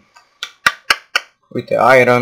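A pickaxe chips at stone in quick knocks.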